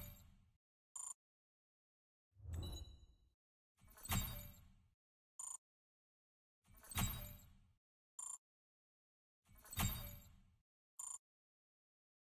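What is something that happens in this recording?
A short bright chime rings after each card.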